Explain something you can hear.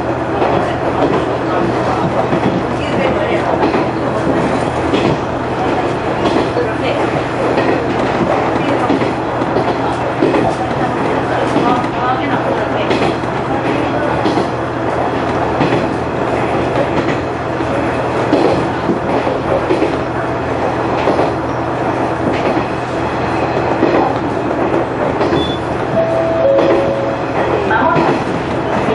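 Train wheels clatter and rumble on the rails.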